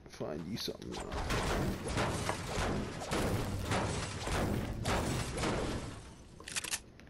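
A pickaxe strikes metal again and again.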